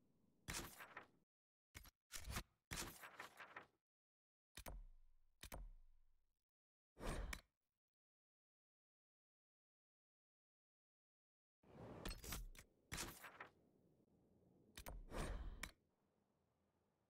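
Short menu swishes and clicks sound in bursts.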